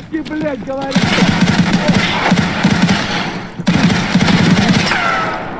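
A rifle fires rapid bursts of shots in an echoing space.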